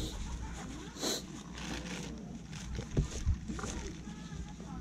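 A plastic bag crinkles under a hand.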